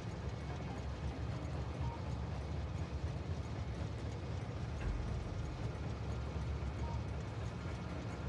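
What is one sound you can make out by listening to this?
Many machines hum and whir steadily.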